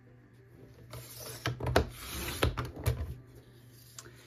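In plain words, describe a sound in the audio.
A paper trimmer blade slides down, cutting through card.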